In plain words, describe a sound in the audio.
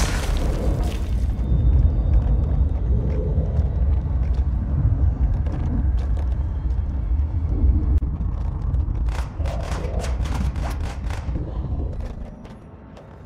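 Heavy debris crashes and rumbles loudly.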